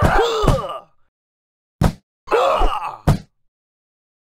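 Cartoonish punches land with short thumping hits.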